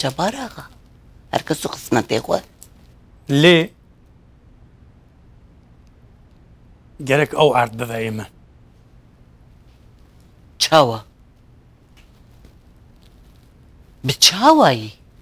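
An elderly woman speaks with emotion in short bursts, close by.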